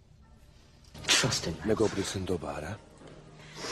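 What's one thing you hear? A man speaks close by in a strained, emotional voice.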